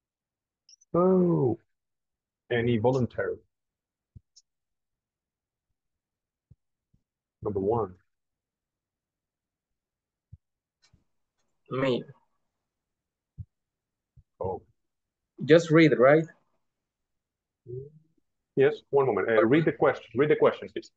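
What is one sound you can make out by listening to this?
A man speaks in short phrases over an online call, with pauses between them.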